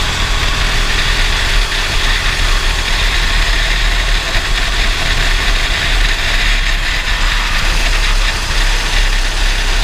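Wind buffets the open kart at speed.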